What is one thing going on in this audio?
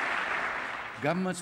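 An elderly man speaks into a microphone in a large hall.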